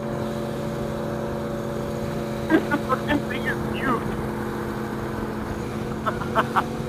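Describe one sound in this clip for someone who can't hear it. A motorcycle engine hums steadily at cruising speed.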